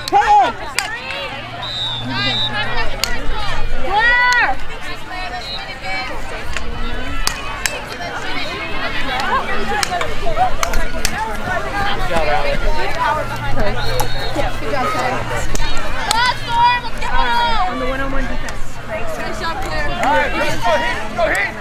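Several young women chatter and call out outdoors, close by and farther off.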